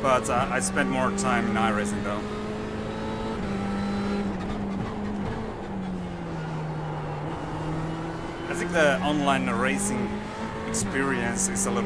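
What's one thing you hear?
A racing car engine drones steadily, its pitch rising and dropping with gear changes.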